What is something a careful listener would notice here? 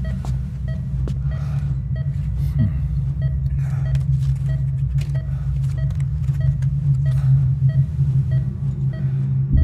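Paper rustles as a man handles a few sheets and a photograph.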